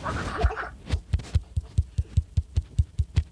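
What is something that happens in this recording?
A springy trampoline boings in a quick, steady rhythm.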